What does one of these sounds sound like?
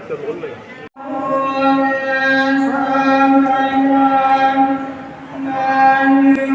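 Men chant together in a low, steady drone.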